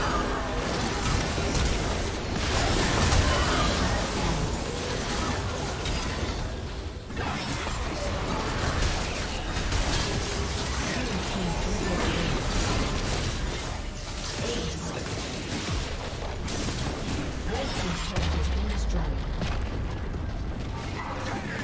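Game spell effects whoosh and blast during a fight.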